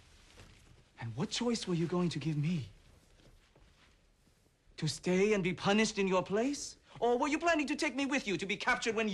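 A young man speaks urgently and reproachfully, close by.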